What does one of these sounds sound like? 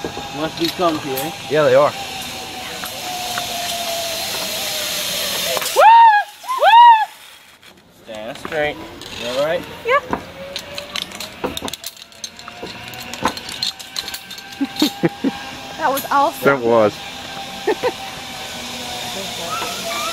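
A zipline pulley whirs along a steel cable.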